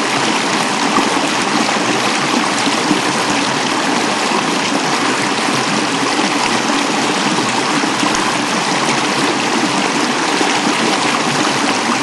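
A stream babbles and rushes over rocks nearby.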